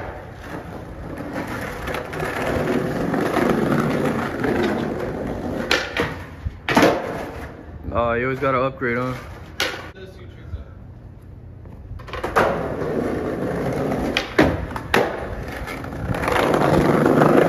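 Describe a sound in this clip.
Skateboard wheels roll with a rough rumble over brick paving.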